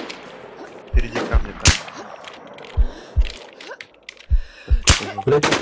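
Loud gunshots bang out in quick bursts.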